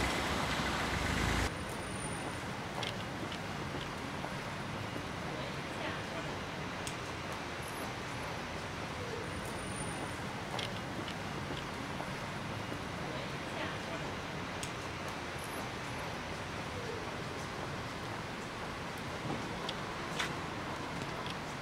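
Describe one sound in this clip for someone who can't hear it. A low city hum fills the air outdoors.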